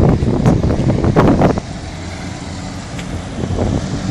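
A small off-road vehicle drives past.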